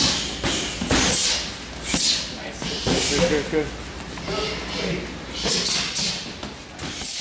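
Gloved punches thump sharply against padded mitts.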